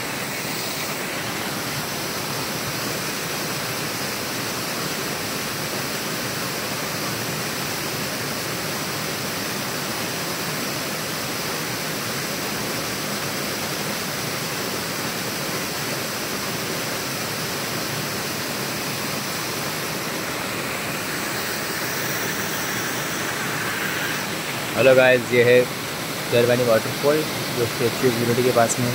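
A waterfall rushes and splashes steadily outdoors.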